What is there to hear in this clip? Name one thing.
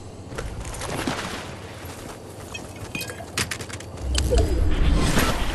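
Quick footsteps patter over rough ground.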